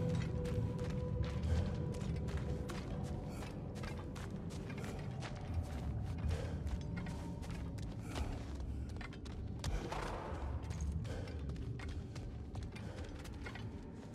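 Heavy footsteps crunch over rough ground.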